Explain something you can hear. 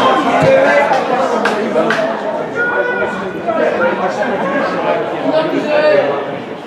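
Men shout and call out across an outdoor pitch.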